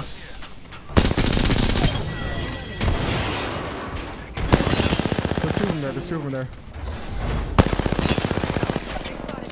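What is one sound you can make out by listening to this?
Automatic gunfire rattles in rapid bursts.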